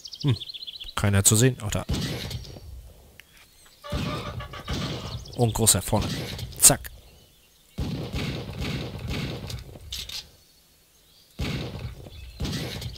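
A shotgun fires blast after blast.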